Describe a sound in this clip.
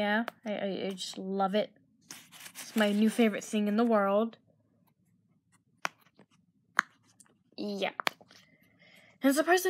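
Silicone bubbles pop under a finger with soft clicks.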